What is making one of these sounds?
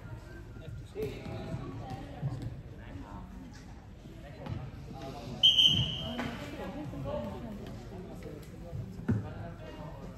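Sticks clack against a plastic ball.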